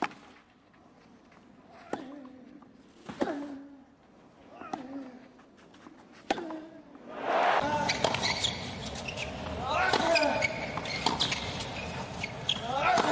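A tennis racket strikes a ball back and forth.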